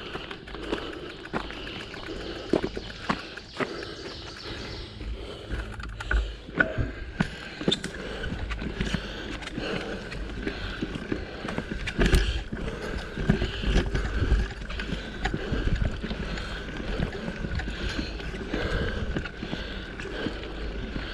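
Footsteps crunch steadily on a dirt trail.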